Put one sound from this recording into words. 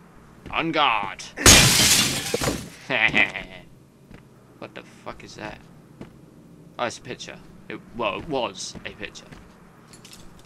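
A young man shouts and talks excitedly into a close microphone.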